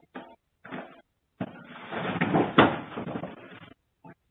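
Debris drops from the ceiling and clatters onto a wooden floor.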